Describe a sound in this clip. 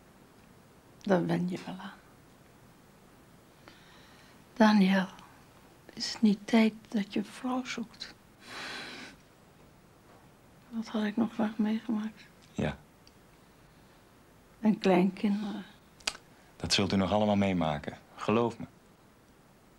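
An elderly woman speaks weakly and slowly, close by.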